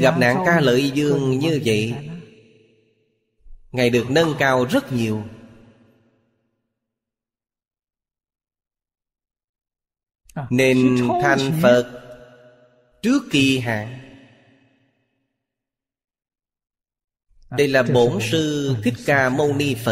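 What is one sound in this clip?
An elderly man speaks calmly and warmly into a close microphone, in short phrases with pauses.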